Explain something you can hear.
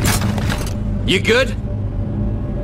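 A man asks a short question in a deep voice.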